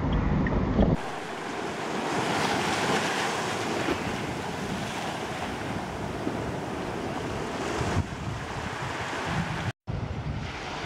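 Wind blows hard outdoors.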